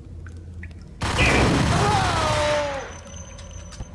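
Guns fire in a rapid, loud burst.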